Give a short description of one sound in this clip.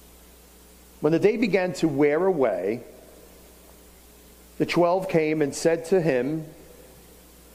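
An older man speaks calmly through a microphone.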